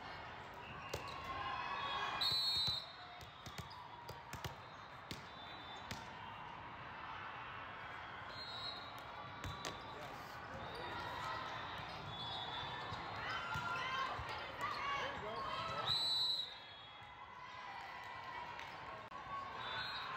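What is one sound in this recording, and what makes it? Young women call out and cheer in a large echoing hall.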